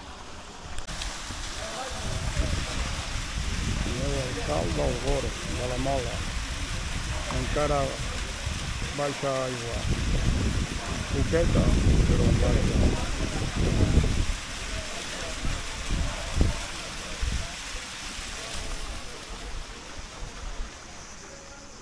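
A waterfall splashes steadily into a pool.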